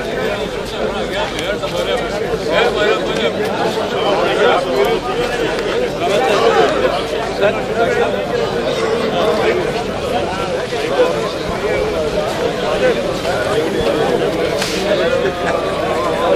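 A crowd of elderly men chatters nearby outdoors.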